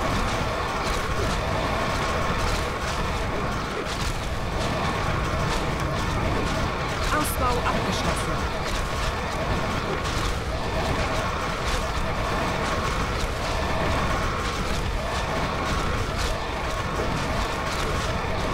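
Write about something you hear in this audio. Magical blasts and impacts clatter repeatedly.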